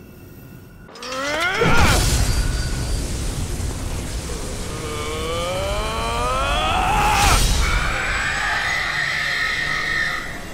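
A loud burst of energy roars and crackles.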